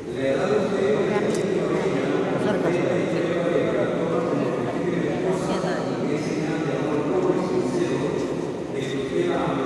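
A young man speaks into a microphone, heard over loudspeakers in a large echoing hall.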